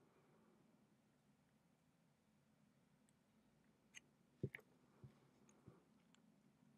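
A soldering iron taps against a metal connector with faint clicks.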